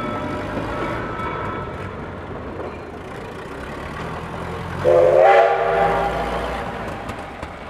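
An old truck engine chugs as the truck drives across the tracks.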